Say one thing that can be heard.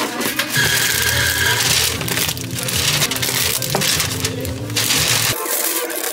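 Plastic wrapping crinkles and rustles.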